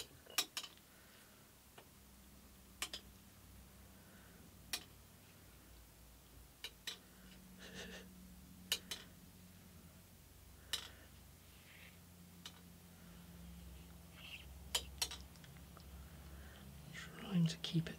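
A metal piece clicks and taps sharply against a metal plate now and then.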